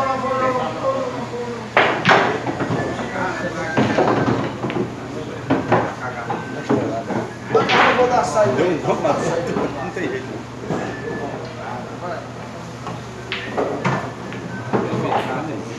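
A cue tip strikes a pool ball.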